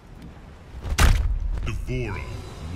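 A heavy blow lands with a deep thud.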